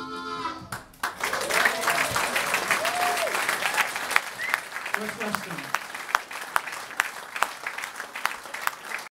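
An audience claps and applauds.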